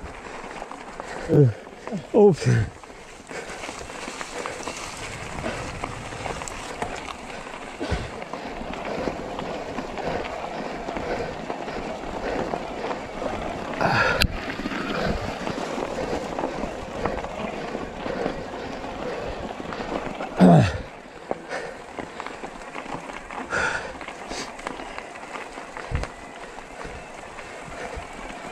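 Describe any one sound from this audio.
Bicycle tyres roll and crunch over a gravel and leaf-covered trail.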